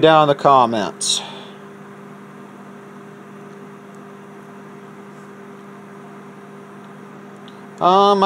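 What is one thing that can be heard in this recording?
A microwave oven hums as it runs.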